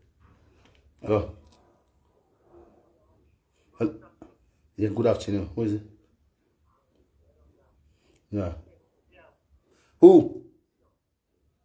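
An elderly man speaks in short bursts into a phone, close by.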